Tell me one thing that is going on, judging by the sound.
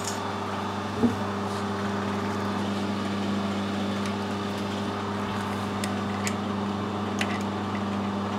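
A metal tool clicks lightly against a metal part.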